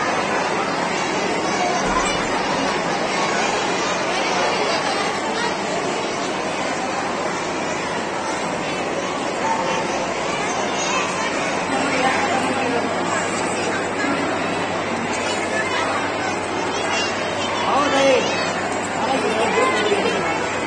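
A crowd of children chatters loudly in a large echoing hall.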